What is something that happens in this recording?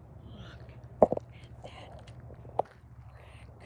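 An elk's antlers knock and scrape against a wire fence.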